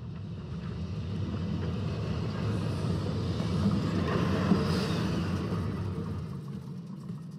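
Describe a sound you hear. A tram rolls by with a low rumble that fades away.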